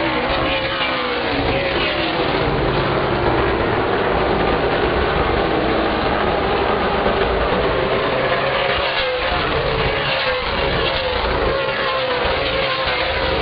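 Race car engines roar loudly as cars speed around a track.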